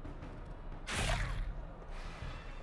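A blade strikes a body with a heavy thud.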